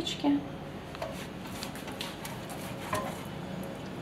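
Fingers rub butter around a metal baking tin.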